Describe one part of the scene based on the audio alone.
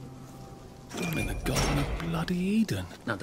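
A metal gate creaks open.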